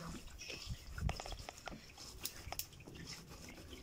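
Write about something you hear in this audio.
Wet pulp squelches as hands knead it in a metal bowl.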